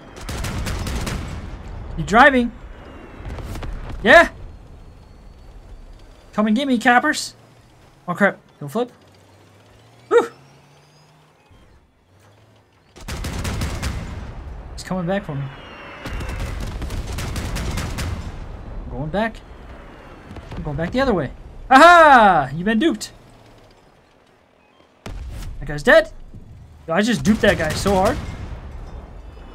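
Heavy guns fire with loud, sharp bangs.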